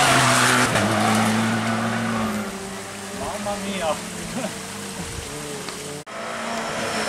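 A rally car engine roars loudly, revving and shifting gears as it speeds away.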